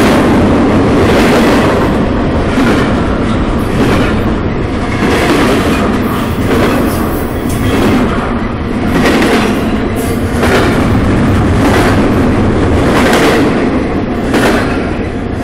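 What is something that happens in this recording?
A freight train rumbles past close by, loud and steady.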